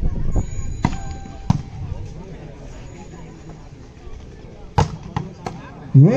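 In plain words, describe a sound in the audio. A volleyball is struck hard.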